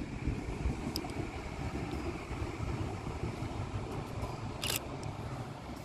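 A train rumbles along the tracks in the distance, moving away.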